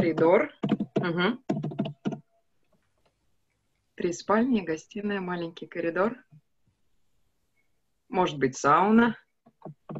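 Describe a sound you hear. A woman speaks slowly and clearly over an online call, pausing between phrases.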